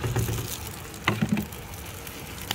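A plate knocks against a frying pan.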